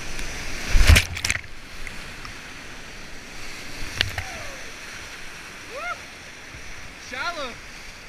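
A paddle splashes in the water.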